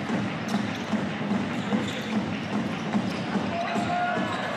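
A basketball bounces on a hardwood floor in steady, rhythmic thumps.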